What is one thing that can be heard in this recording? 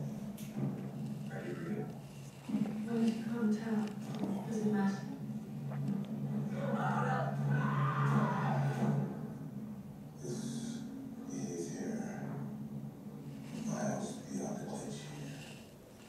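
A film soundtrack with music plays through loudspeakers in a room.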